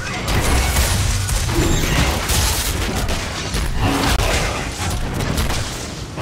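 A dragon roars and beats its wings in a fight.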